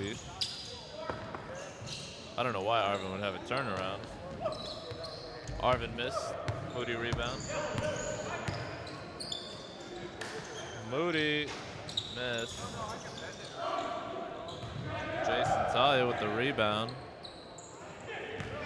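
Sneakers squeak sharply on the floor.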